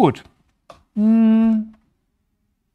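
A man hums a drawn-out note close to a microphone.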